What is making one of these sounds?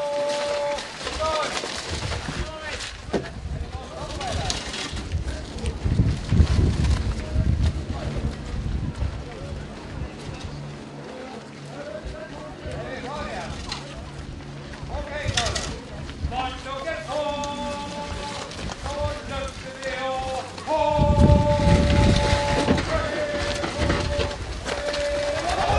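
A heavy wooden boat scrapes and creaks over wooden rails.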